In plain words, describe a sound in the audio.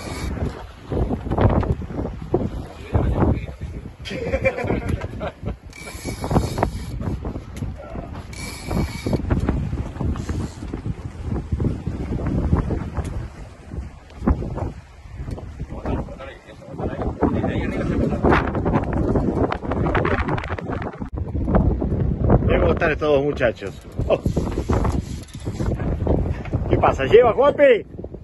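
A big-game fishing reel is cranked and its line winds in.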